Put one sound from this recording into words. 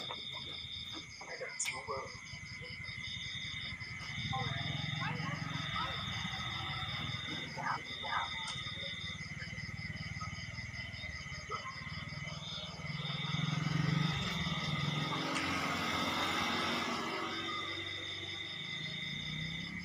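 A group of young people chat and laugh softly nearby.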